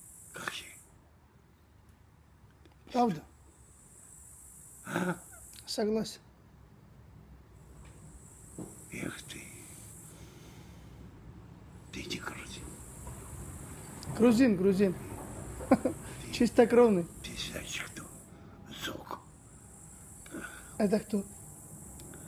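An elderly man speaks close by in short bursts.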